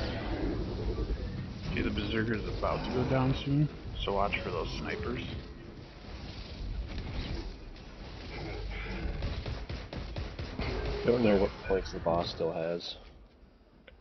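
Rifle shots and energy blasts crackle and boom in a fast video game battle.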